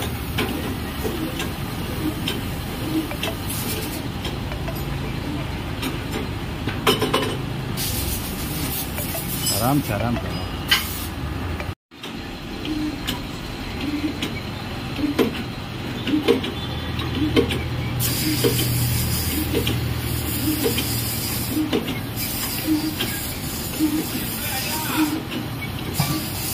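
A hydraulic press motor hums steadily.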